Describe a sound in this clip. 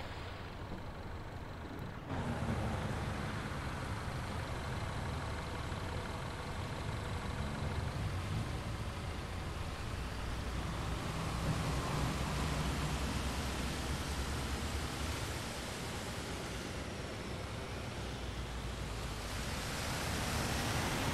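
A bus engine hums low and steady.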